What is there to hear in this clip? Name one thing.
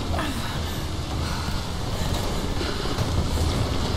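A waterfall rushes steadily.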